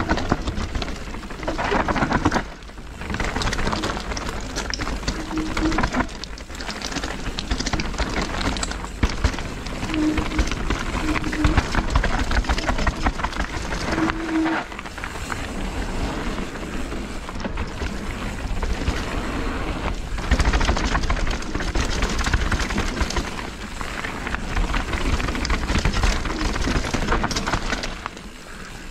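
Bike tyres roll and crunch over loose dirt and gravel.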